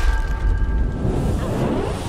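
Electric sparks crackle and buzz.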